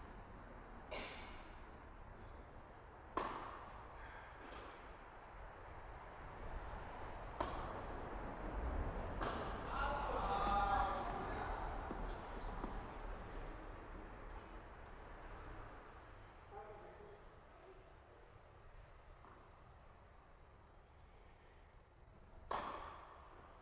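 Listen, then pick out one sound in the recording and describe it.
Tennis balls are hit sharply with rackets, echoing in a large hall.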